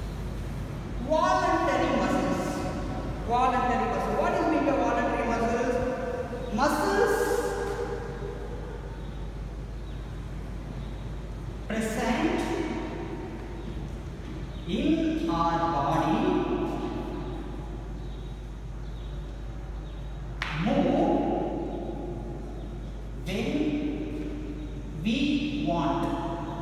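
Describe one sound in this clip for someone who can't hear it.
A man speaks calmly and clearly, as if teaching, in a room with a slight echo.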